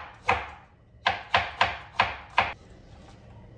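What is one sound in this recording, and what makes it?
A knife chops quickly on a cutting board.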